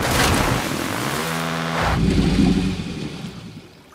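A motorcycle engine revs.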